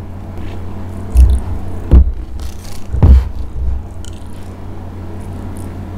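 Plastic knocks and rustles close to a microphone as a bottle is handled.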